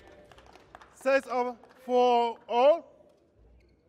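Young women shout loudly in celebration.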